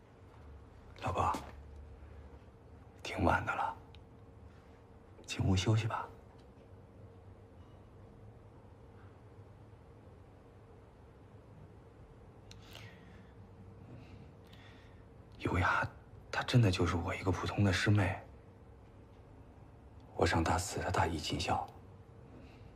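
A man speaks quietly and gently, close by.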